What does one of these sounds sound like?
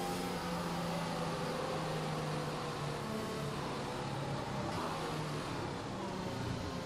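A racing car engine drones steadily and drops in pitch as the car slows.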